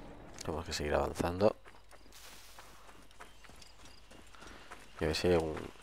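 Footsteps run quickly over dry, crunchy ground.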